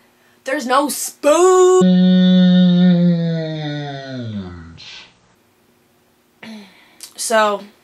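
A young woman speaks close to a microphone in a dramatic, drawn-out voice, her pitch sliding downward.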